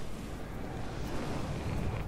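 Flames burst and roar.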